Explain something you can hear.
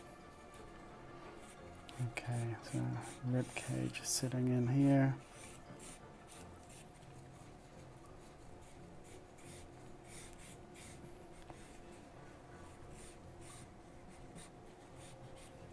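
A pencil scratches and scrapes across paper.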